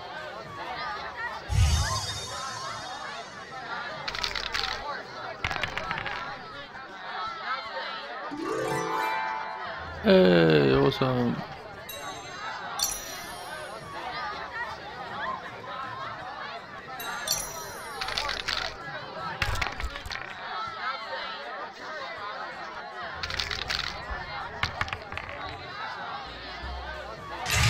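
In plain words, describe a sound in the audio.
Dice rattle and clatter on a wooden board.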